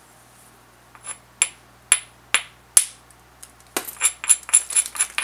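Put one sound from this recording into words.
A hand stone taps and clicks sharply against a flint blade.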